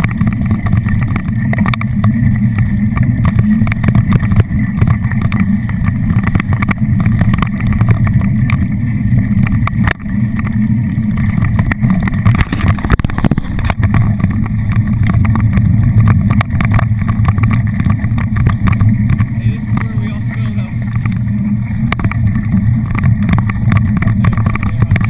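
Wind rushes loudly past a fast-moving bike.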